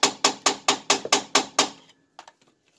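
A hand tool bangs against metal in quick, sharp blows.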